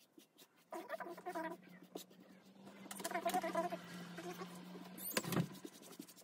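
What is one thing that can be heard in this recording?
A paintbrush swishes across a wooden board.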